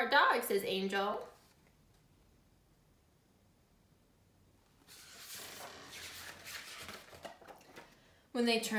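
A young woman reads aloud calmly, close by.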